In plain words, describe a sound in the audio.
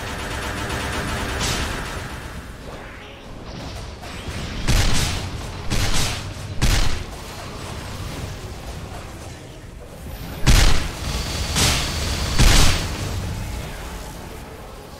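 Game attack effects burst and crash repeatedly.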